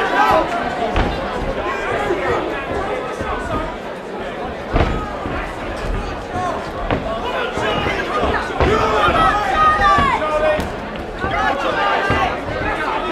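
Boxing gloves thud against a boxer's body and head.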